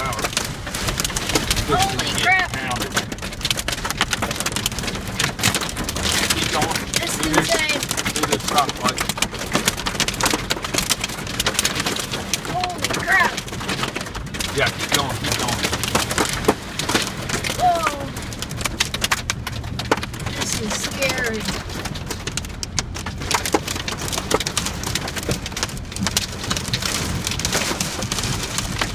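Hail and heavy rain drum on a truck's roof and windshield.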